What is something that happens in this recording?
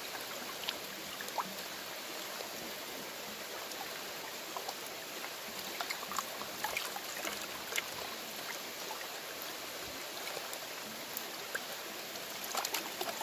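A stream flows and burbles steadily.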